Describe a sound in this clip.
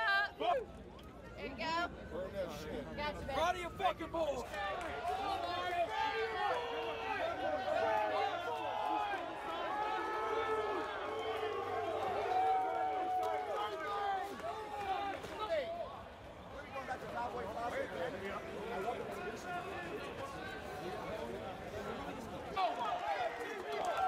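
Men cheer and whoop close by.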